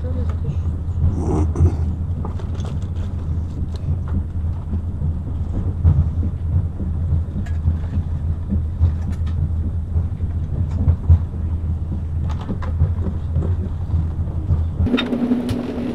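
A train rumbles steadily.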